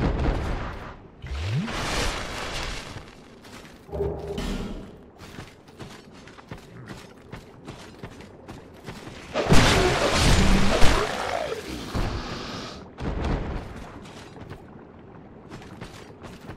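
Footsteps crunch on loose ground.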